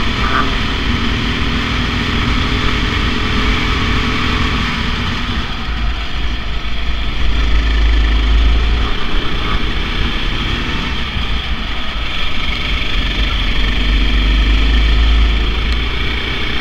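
A go-kart engine revs loudly up close, rising and falling in pitch.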